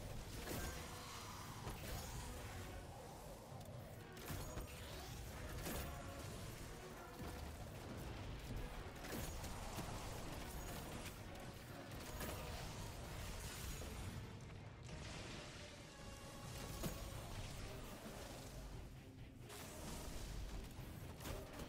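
Gunshots and energy blasts crack repeatedly.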